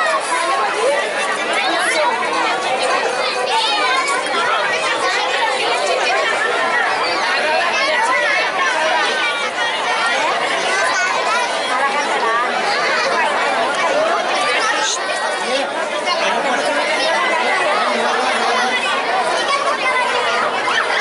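A crowd chatters loudly outdoors.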